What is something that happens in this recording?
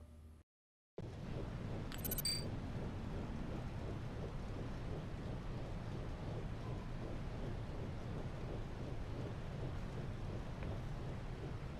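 Rain falls steadily in a soft, even hiss.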